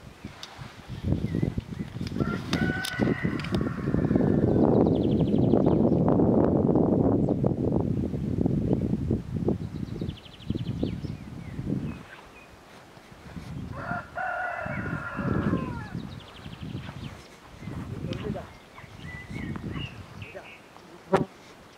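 Wind gusts across an open hillside.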